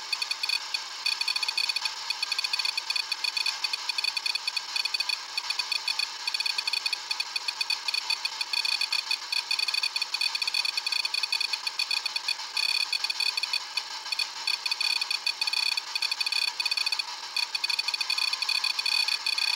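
An electronic device gives off a rapid, pulsing high-pitched chirping.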